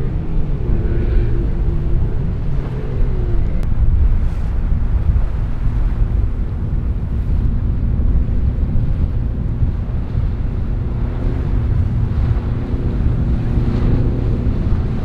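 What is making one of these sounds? A powerful motorboat engine roars steadily close by.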